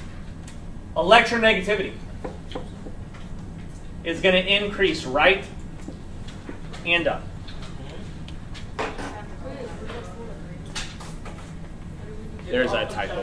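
A man speaks calmly nearby, in short phrases.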